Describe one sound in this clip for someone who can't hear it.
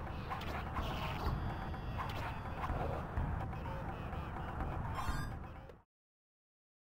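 Loud game music plays with a heavy beat.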